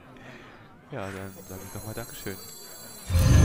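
A card lands on a game board with a thud and a magical chime.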